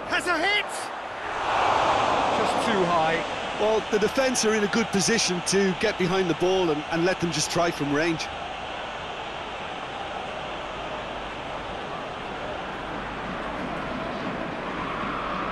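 A stadium crowd roars steadily in a large open space.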